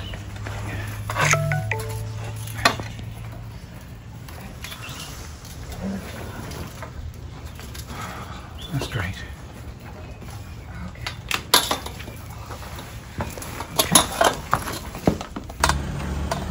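A metal pole knocks and scrapes against a wall.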